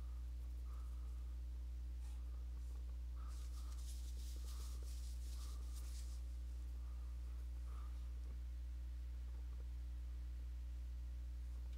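A paintbrush scrapes softly across canvas.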